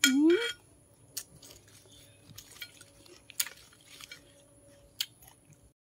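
A woman chews food with her mouth close to the microphone.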